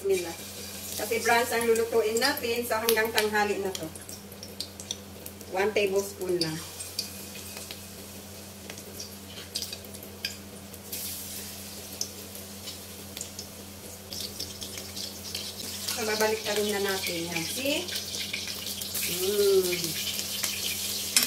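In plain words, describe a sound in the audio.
A metal spoon clinks and scrapes against a pan.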